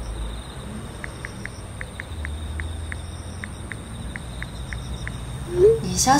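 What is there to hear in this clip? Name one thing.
A phone's keys tick softly as a young woman types.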